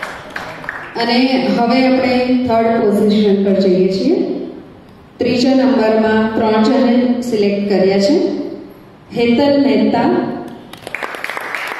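A woman sings through a loudspeaker.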